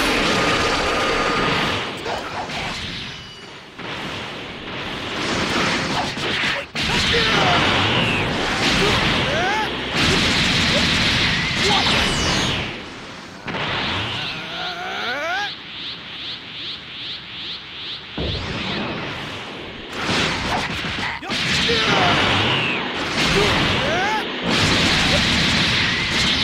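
Punches and energy blasts crash and boom in quick bursts.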